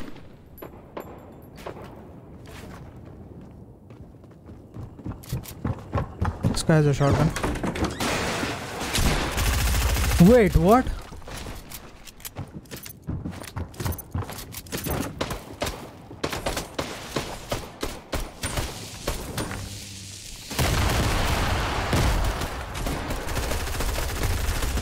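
Footsteps thud quickly across wooden floors.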